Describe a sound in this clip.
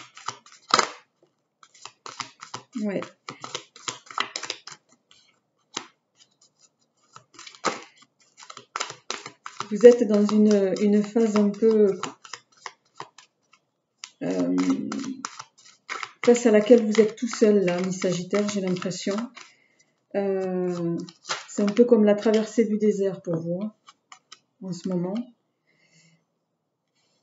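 Playing cards are laid softly on a cloth.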